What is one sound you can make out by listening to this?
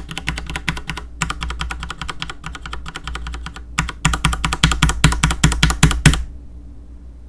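Keys on a mechanical keyboard clack rapidly in quick bursts, close by.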